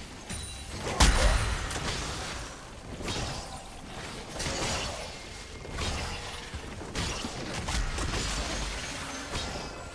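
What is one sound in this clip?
Sudden impacts thud and bang during the fight.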